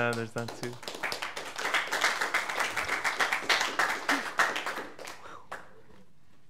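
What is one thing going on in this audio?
A small audience claps.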